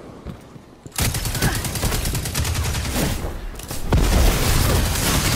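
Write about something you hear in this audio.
Gunfire bursts rapidly at close range.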